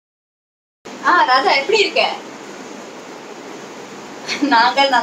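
A young woman speaks cheerfully close by.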